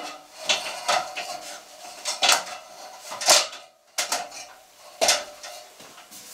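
A metal ladder creaks and rattles.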